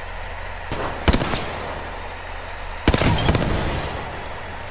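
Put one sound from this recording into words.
A rifle fires a burst of loud shots.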